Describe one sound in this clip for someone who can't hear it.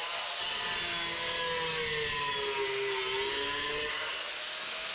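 An angle grinder blade grinds through a tile, its pitch dropping under load.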